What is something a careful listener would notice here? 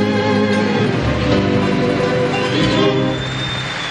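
An orchestra plays a final loud chord in a large hall.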